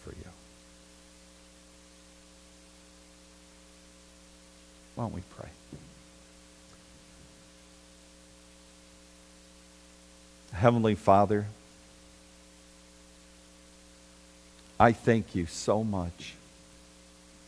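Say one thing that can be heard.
A middle-aged man speaks slowly through a microphone, with long pauses, in an echoing hall.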